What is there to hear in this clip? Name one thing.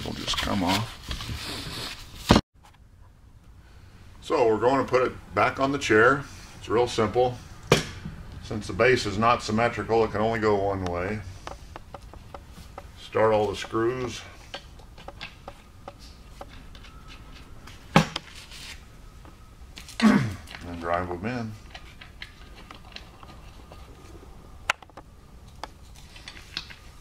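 Metal parts click and clatter as they are handled.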